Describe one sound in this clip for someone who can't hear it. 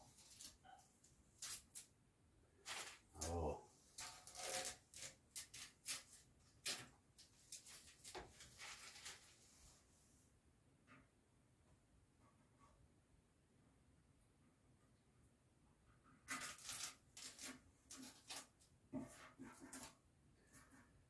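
Paper crinkles and rustles under handling.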